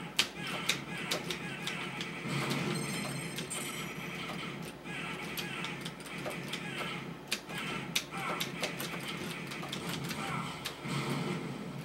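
Arcade game gunshots fire in rapid bursts.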